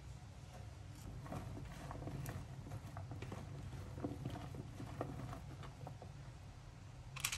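Hands toss food in a bowl with soft squelching.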